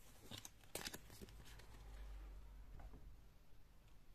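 Playing cards rustle softly as a hand picks them up.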